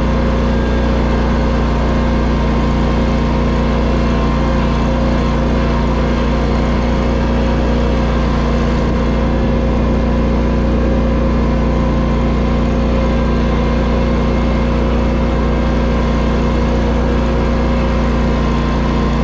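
A riding mower's engine hums steadily up close.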